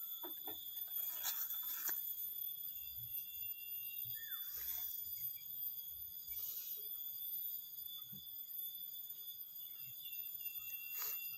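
Leaves rustle and brush close by.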